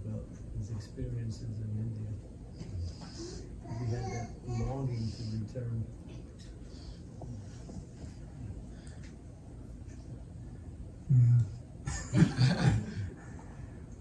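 An elderly man laughs softly.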